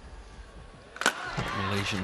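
A crowd in a large hall cheers and applauds loudly.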